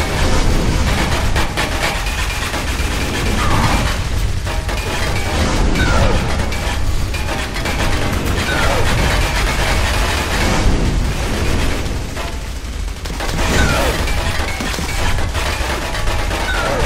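Magic blasts crackle and roar.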